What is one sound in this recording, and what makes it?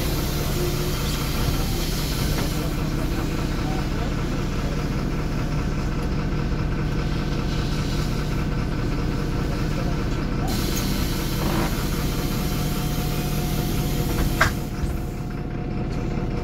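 The bus rattles and creaks as it drives.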